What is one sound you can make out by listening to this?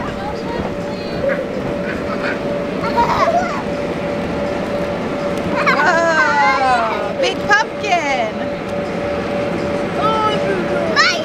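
Young children shout and squeal with excitement outdoors.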